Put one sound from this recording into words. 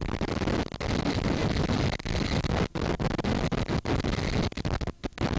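Jet engines roar loudly and steadily.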